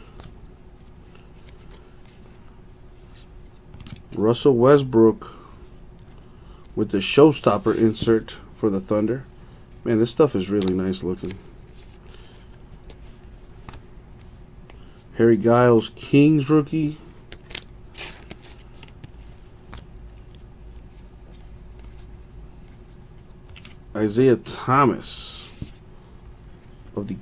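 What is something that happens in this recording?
Glossy trading cards slide and rustle between fingers.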